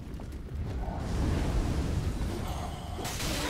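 Fire roars in a loud burst.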